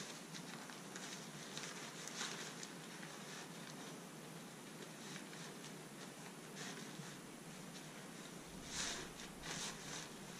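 A rolled mat rustles and crinkles close by.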